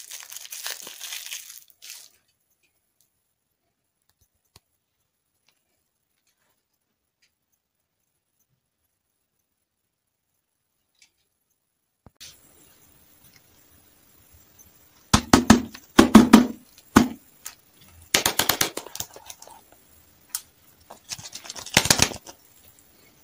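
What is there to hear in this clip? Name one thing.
Plastic wrappers crinkle and rustle.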